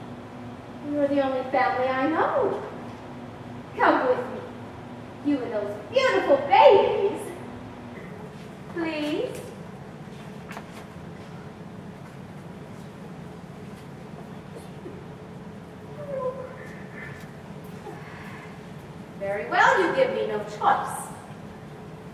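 A young woman speaks in a raised, theatrical voice from a distant stage in a large hall.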